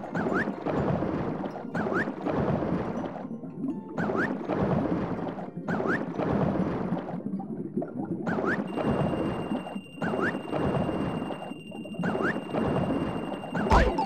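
Air rushes past as a game character falls down a shaft.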